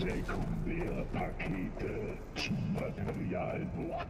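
Footsteps patter quickly on a metal floor.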